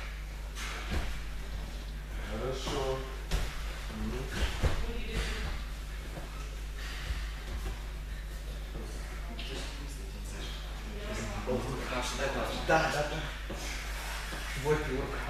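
Bodies thump onto a padded mat.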